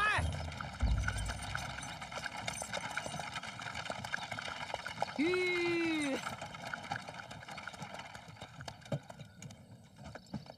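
Horse hooves clop steadily on a dirt road.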